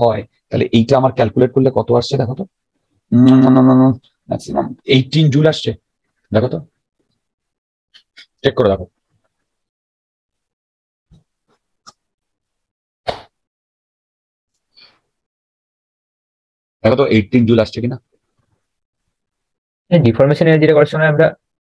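A man explains calmly through a close microphone, in bursts with pauses.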